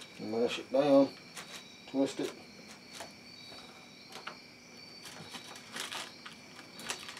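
Aluminium foil crinkles and rustles under busy hands.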